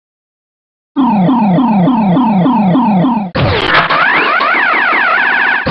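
Electronic tones sweep up and down in a long warbling run.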